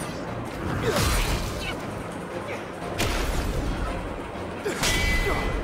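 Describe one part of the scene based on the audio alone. Heavy blows land with sharp thuds.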